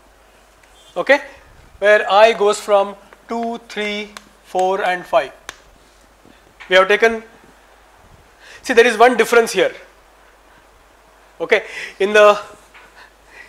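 A middle-aged man speaks calmly into a clip-on microphone, in short phrases with pauses.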